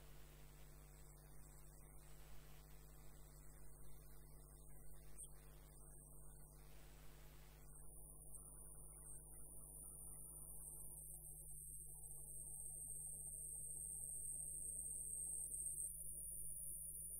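A wood lathe spins with a steady hum.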